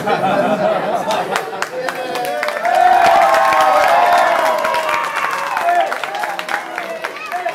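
A group of children and adults cheer and shout excitedly close by.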